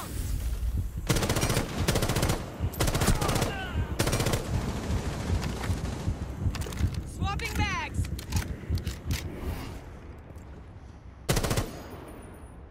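Gunshots fire in sharp, rapid bursts.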